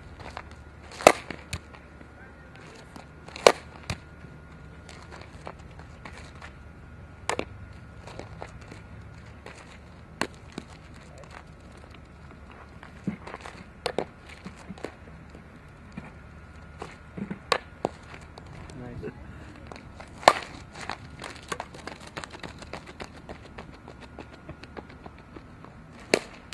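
A softball bat cracks sharply against a ball, again and again.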